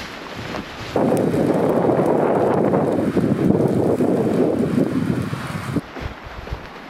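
Wind blows hard through trees.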